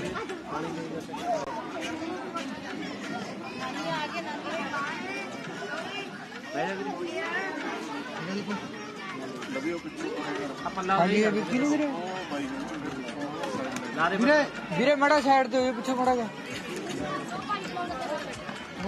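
Several men and women talk and chatter nearby.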